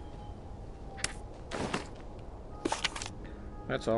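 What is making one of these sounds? A paper map rustles as it is unfolded.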